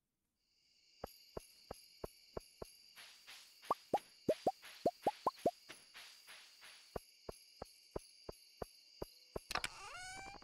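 Soft game footsteps tap at an even pace.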